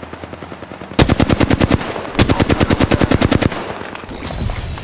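An automatic gun fires rapid bursts of loud shots.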